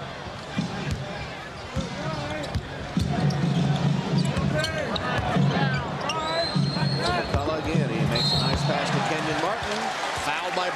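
A large crowd cheers and chants in an echoing arena.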